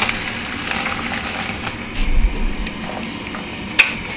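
Water bubbles at a boil in a pot.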